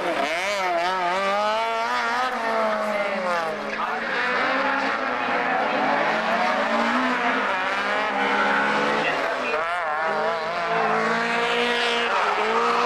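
Tyres squeal as a car slides through corners.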